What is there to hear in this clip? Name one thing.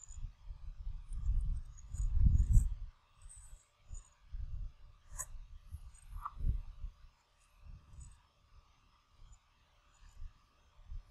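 Wind buffets a microphone outdoors in gusts.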